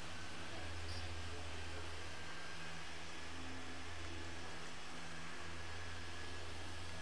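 A machine polisher hums steadily.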